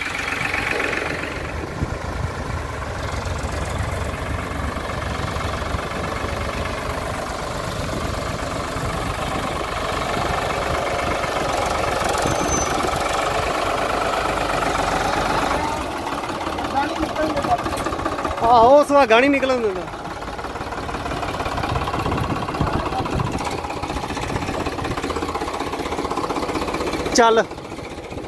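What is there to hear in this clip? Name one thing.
A tractor engine runs with a steady, low rumble.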